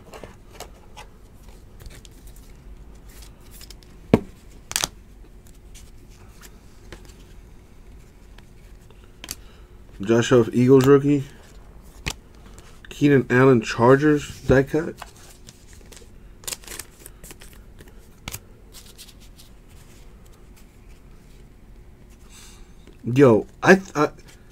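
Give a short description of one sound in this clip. Trading cards rustle and click as they are shuffled by hand.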